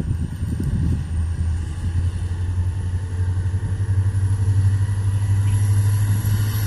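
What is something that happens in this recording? A distant diesel train engine rumbles as it approaches, slowly growing louder.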